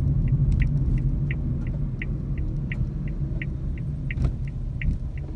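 A vehicle's engine hums steadily.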